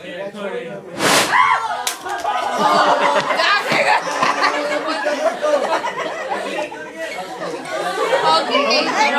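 Several young people talk and laugh loudly nearby.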